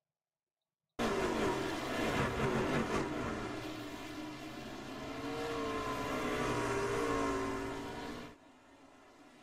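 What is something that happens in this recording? Tyres screech as racing trucks spin and collide.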